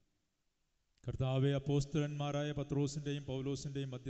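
A man sings through a microphone in a steady voice.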